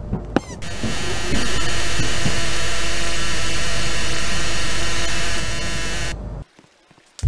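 A game creature lets out a loud, harsh screech.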